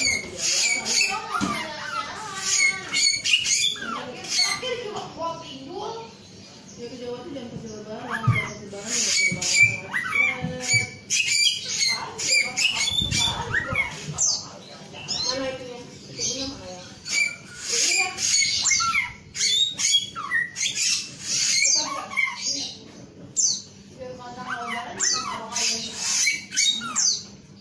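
A caged songbird sings loud, rapid chirps and trills nearby.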